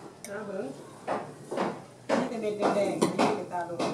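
A wooden pestle pounds food in a mortar with dull thuds.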